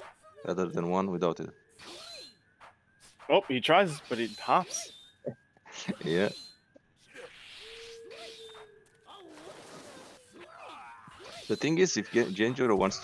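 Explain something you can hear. Swords slash and clang in a video game fight.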